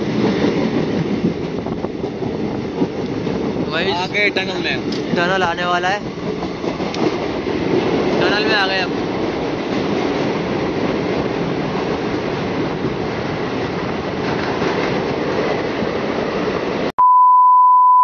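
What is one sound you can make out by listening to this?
A train rumbles steadily.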